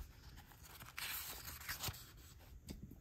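A paper page rustles as it is turned.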